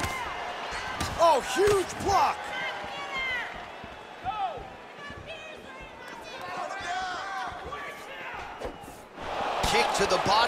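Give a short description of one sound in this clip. A kick lands on a body with a heavy thud.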